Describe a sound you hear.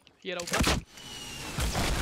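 A rocket explodes with a loud boom.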